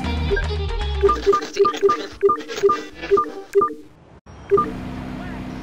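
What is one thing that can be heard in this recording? Electronic beeps sound in quick succession.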